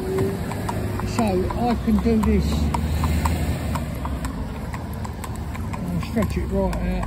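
A carriage's wheels rumble along the road.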